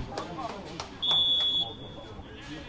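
A referee's whistle blows one short blast.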